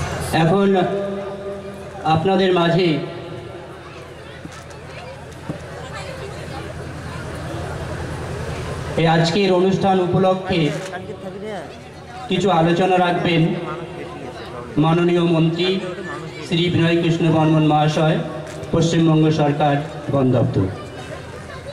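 A man speaks loudly through a microphone and loudspeakers in a large echoing hall.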